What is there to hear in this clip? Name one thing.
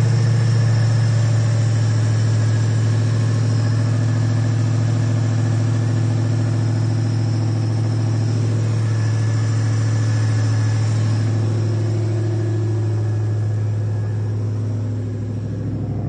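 A car engine idles with a steady, deep rumble up close.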